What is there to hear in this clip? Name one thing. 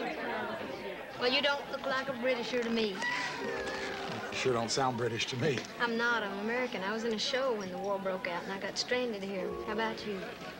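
A woman speaks softly and warmly, close by.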